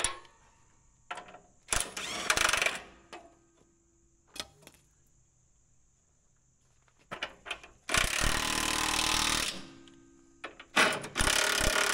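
Metal tools clank against machinery.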